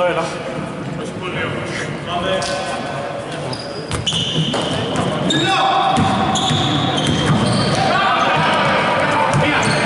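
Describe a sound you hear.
Men call out to each other across an echoing hall.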